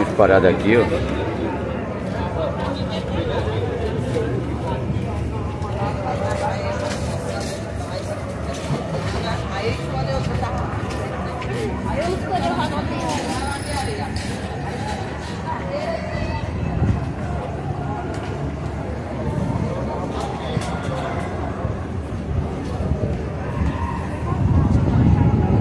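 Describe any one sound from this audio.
A busy crowd of men and women chatters all around outdoors.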